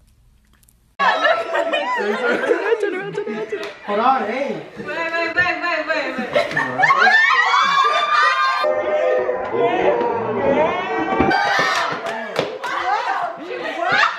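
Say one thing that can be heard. A group of people cheer and laugh.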